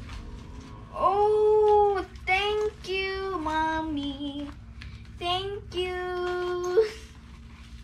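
A young girl squeals in delight.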